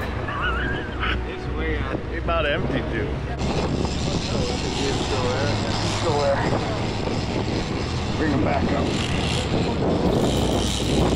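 Wind blows outdoors over open water.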